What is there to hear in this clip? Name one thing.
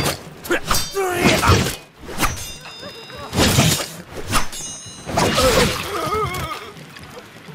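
Swords clash and strike in quick bursts.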